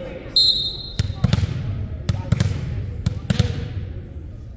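A player bounces a volleyball on the wooden floor.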